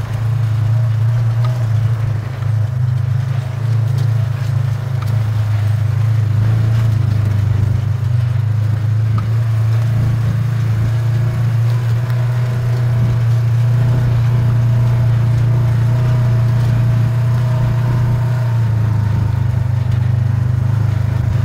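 Tyres crunch and rumble over a dirt track.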